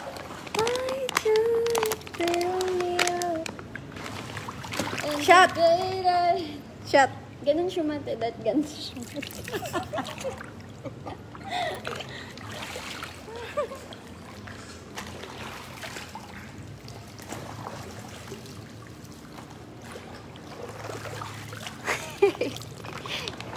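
A young woman talks cheerfully close by, with laughter.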